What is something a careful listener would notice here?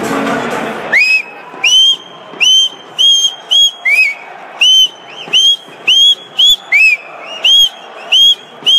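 A young man blows into his cupped hands, making short, high, hooting whistles again and again.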